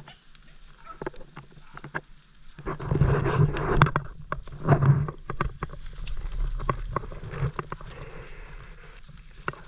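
Dry leaves and undergrowth rustle and crackle close by.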